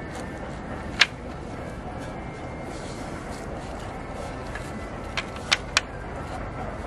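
Wooden slats knock and clatter as a folding rack is set up.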